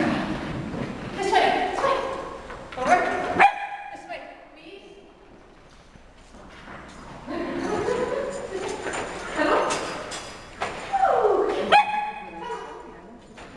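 A woman calls out with animation in a large echoing hall.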